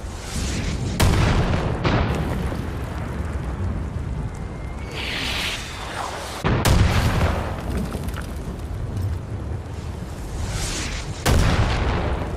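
Gunshots boom and echo.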